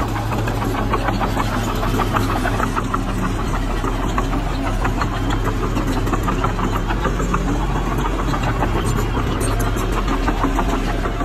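Dirt and stones scrape and tumble as a bulldozer pushes soil.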